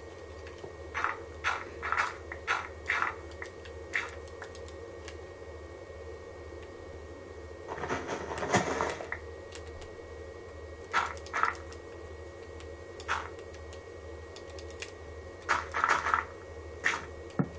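Stone blocks crunch and crack in short bursts as they are broken in a video game, heard through a television speaker.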